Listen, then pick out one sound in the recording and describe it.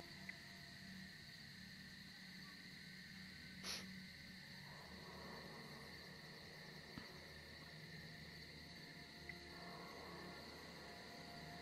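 Footsteps tread slowly over dirt and grass.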